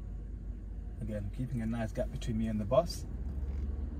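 A young man speaks calmly close by inside a car.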